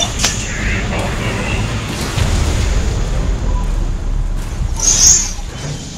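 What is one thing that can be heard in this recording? Explosions boom and crackle in a battle.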